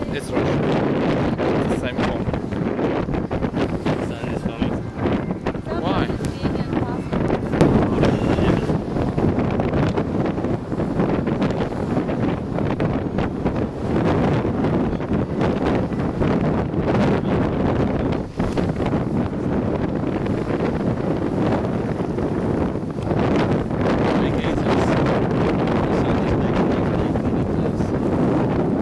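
Strong wind buffets loudly outdoors.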